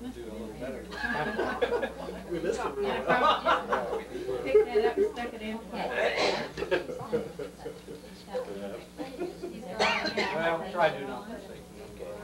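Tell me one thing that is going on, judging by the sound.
Middle-aged men laugh heartily together.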